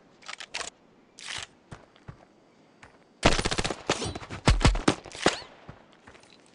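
Rapid gunshots crack in loud bursts.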